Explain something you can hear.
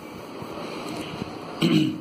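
Paper rustles as hands smooth a sheet.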